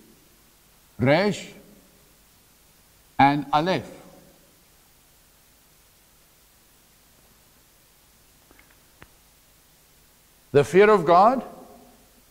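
A middle-aged man speaks loudly in short bursts in an echoing room.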